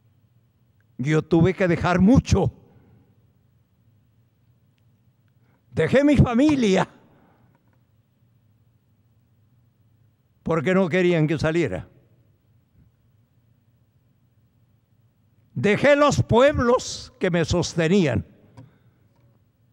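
An elderly man speaks slowly into a microphone, with long pauses.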